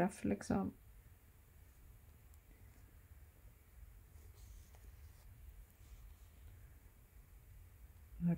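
Thread is pulled through cloth with a soft rustle.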